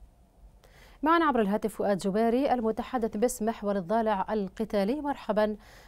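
A woman speaks calmly and clearly into a microphone.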